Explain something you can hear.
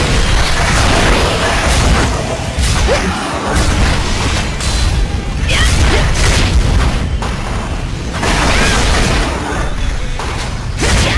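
A large monster roars and screeches.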